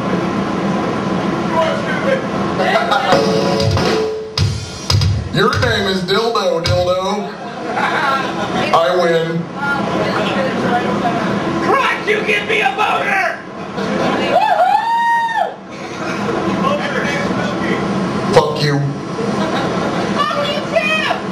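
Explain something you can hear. An electric guitar strums loudly through an amplifier.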